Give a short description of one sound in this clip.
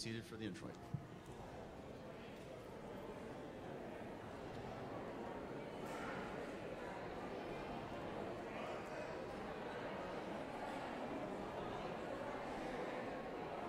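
Many people chatter and murmur together in a large echoing hall.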